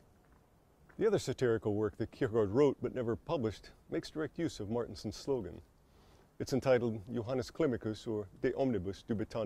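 A man speaks calmly and clearly into a microphone, close by.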